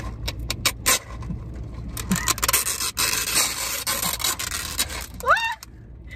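Ice cubes rattle and clink in plastic cups close by.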